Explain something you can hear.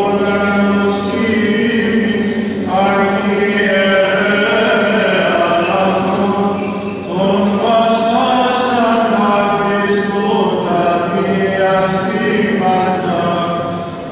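A man chants in a low, steady voice, echoing through a large hall.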